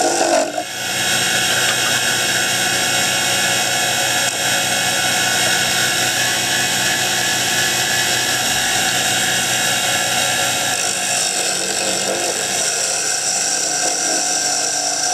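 A wood lathe spins with a steady motor hum.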